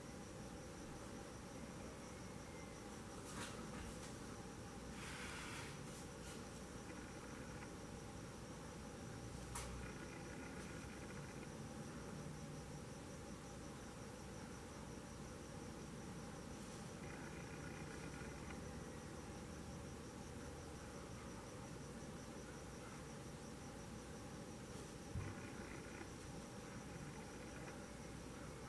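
A paintbrush strokes softly on cloth.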